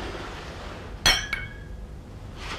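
Glass glasses clink together in a toast.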